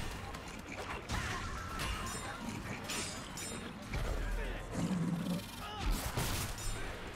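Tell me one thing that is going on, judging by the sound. Large beasts roar and growl.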